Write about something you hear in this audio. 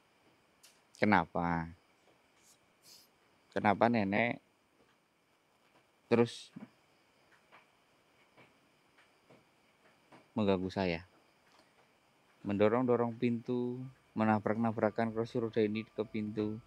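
A young man talks calmly nearby, in short bursts.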